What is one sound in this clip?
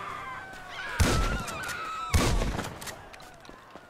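Two loud gunshots ring out close by.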